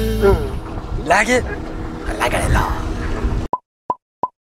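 A man speaks cheerfully close by.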